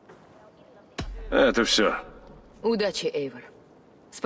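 A man answers in a deep, calm voice, close by.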